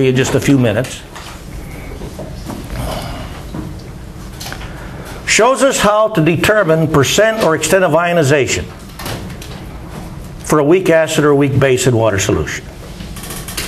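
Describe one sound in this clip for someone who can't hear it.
An elderly man speaks calmly and clearly in a room with a slight echo, pausing between phrases.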